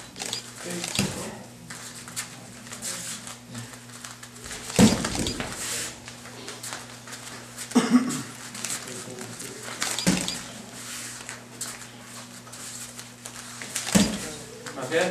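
Punches and kicks smack hard against padded pads.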